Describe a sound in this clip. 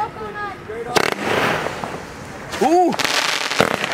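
A firework shoots up with a whoosh.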